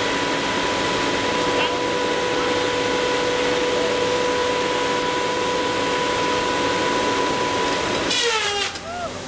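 A chainsaw head whines as it cuts through a tree trunk.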